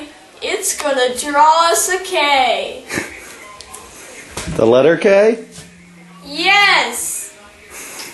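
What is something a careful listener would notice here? A boy talks excitedly close by.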